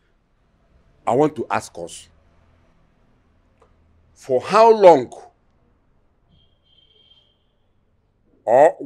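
An elderly man speaks forcefully, close by, in short bursts.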